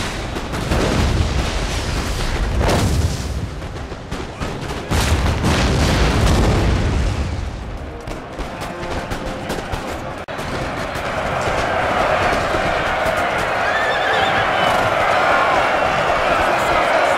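Muskets crackle in rapid volleys.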